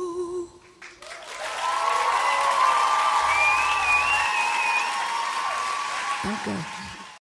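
A large crowd cheers and whistles in a big echoing hall.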